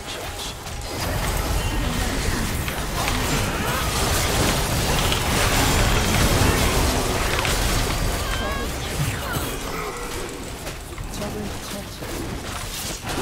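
Spell effects burst and crackle during a fight in a video game.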